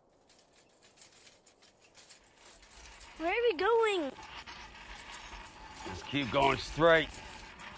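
A shopping cart's wheels rattle along a road.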